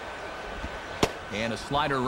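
A baseball bat cracks against a ball.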